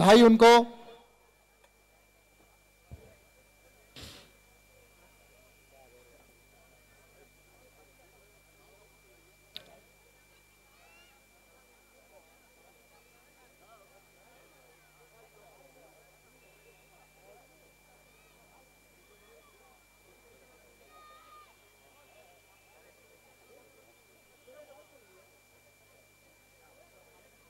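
A crowd of people murmurs faintly in the background.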